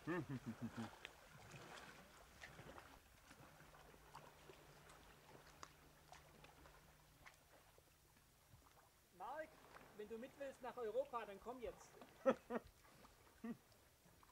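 Water laps gently against rocks.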